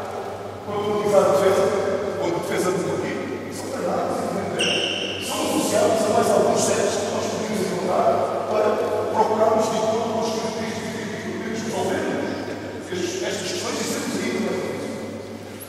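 A man speaks loudly in a large echoing hall.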